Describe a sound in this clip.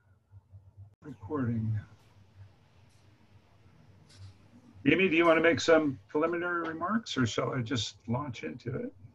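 An older man speaks calmly through a headset microphone over an online call.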